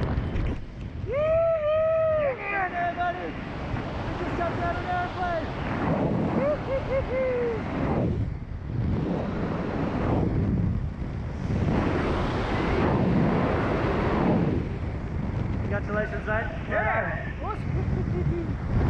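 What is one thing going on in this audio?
A man whoops and shouts excitedly close by.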